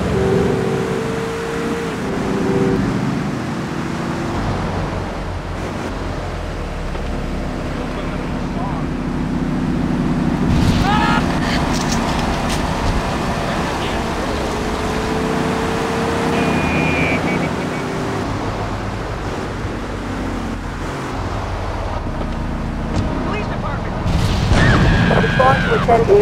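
A car engine roars and revs steadily.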